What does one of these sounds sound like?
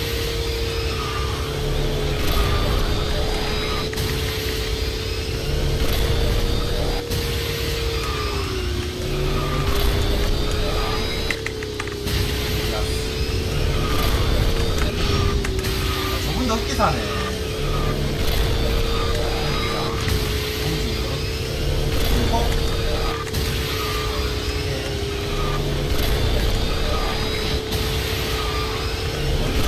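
A racing game's kart engine drones steadily at high speed.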